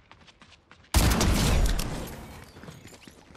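A rifle fires a single loud shot that rings out.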